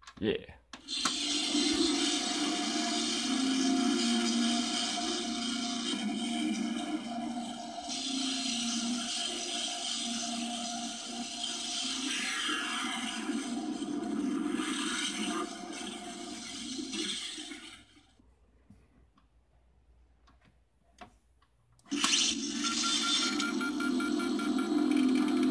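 A small speaker in a toy bust plays loud recorded music and effects.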